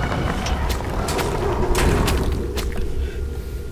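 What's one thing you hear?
Sharp blows land in quick succession, with short crunching impacts.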